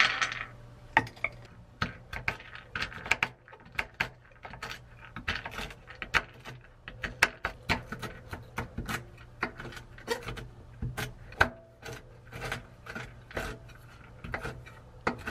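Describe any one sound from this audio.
A knife chops nuts on a wooden board with quick, sharp knocks.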